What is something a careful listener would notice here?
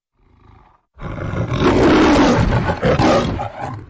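A lion roars loudly.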